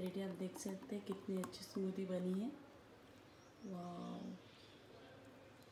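A thick drink pours into a glass.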